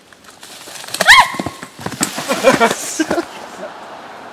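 A young woman shrieks and laughs close by.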